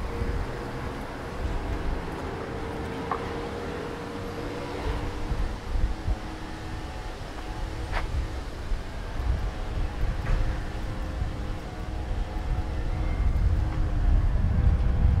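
Wind blows outdoors, rumbling low and gusting.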